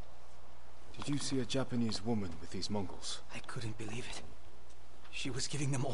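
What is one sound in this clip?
A man speaks calmly and in a low voice.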